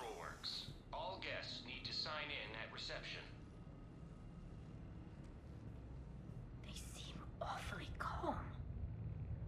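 A man speaks into a close microphone.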